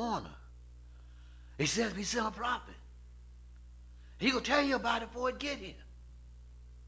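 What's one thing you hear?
A man preaches with animation into a microphone, in short emphatic phrases.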